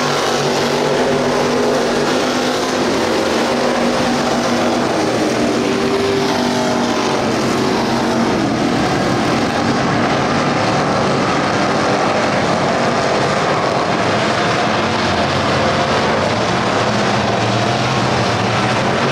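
Race car engines roar loudly as the cars circle a dirt track.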